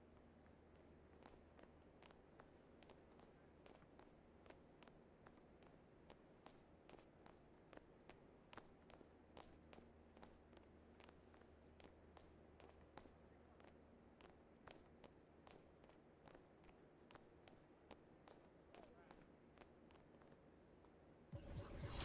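Footsteps squeak quickly and steadily on a hardwood court floor.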